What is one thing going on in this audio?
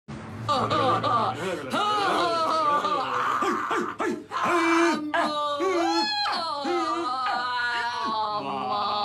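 A woman sings loudly with a wavering voice.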